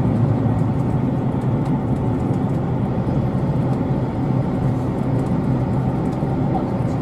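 Train wheels click and rattle over the rails.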